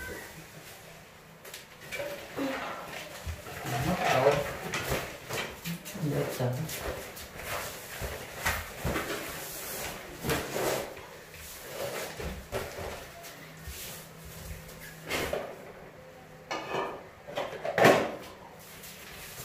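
A broom sweeps across a tiled floor with soft swishing strokes.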